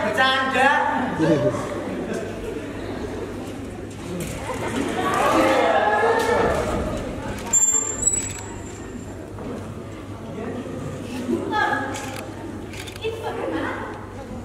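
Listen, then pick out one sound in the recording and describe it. An elderly woman speaks in a large echoing hall.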